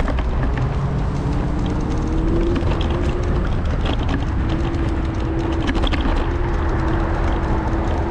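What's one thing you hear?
City traffic hums low and steady.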